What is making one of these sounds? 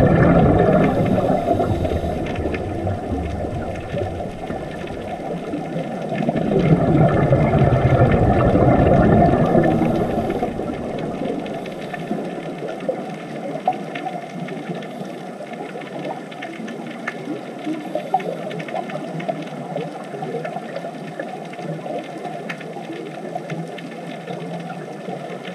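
Air bubbles from divers' breathing gurgle and rumble underwater.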